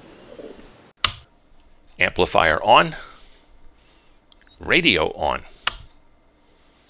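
A switch clicks sharply.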